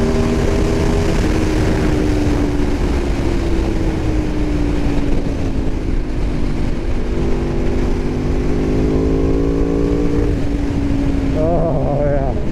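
A motorcycle engine slows and winds down in pitch.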